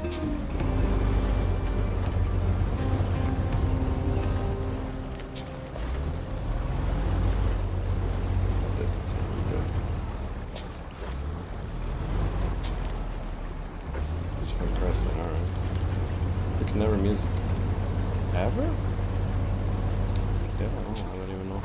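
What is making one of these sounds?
A truck engine rumbles and revs steadily.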